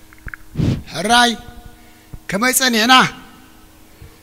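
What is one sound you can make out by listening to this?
A man calls out through a microphone.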